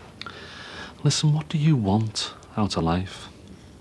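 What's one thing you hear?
A middle-aged man speaks close by, firmly and with emphasis.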